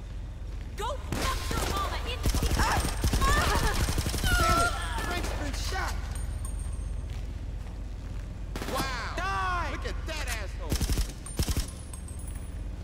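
Gunfire rattles in rapid bursts, echoing off the walls.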